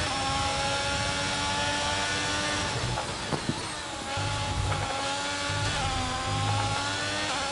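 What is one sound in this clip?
A racing car engine screams at high revs, dropping in pitch as it slows for a corner and rising again as it speeds up.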